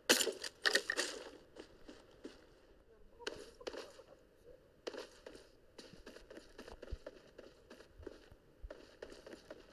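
Footsteps crunch on the ground at a quick pace.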